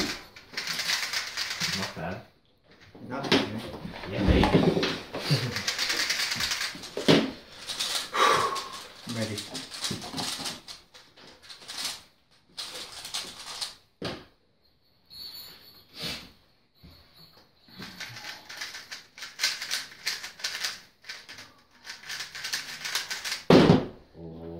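Puzzle cubes click and rattle as they are twisted quickly.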